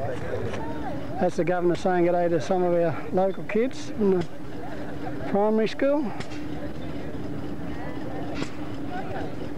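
Children and adults chatter outdoors.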